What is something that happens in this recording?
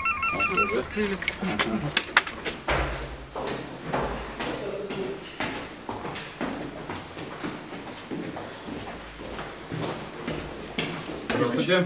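Footsteps climb an echoing stairwell.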